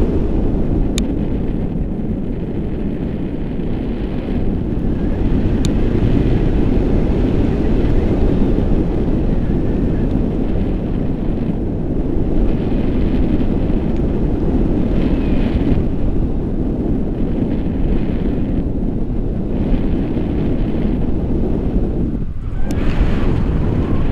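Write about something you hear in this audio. Strong wind rushes and buffets loudly past a microphone outdoors in the air.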